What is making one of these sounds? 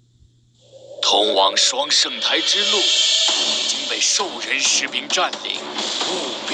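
Clashing effects and whooshes sound in a game scene.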